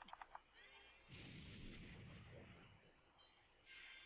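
A fire spell bursts with a whooshing roar.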